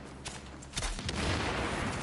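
Gunfire cracks loudly in sharp bursts.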